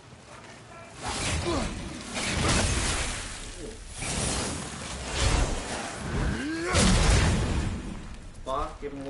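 Heavy blows land with thuds and whooshes during a fight.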